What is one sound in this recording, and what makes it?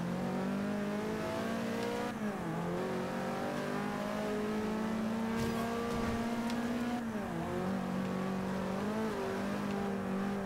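A racing car engine roars loudly, revving up and dropping in pitch as it shifts gears.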